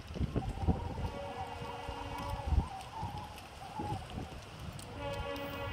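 A diesel locomotive's air horn blows in the distance.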